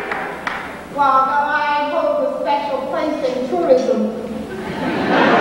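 An elderly woman preaches with animation into a microphone, in a large echoing hall.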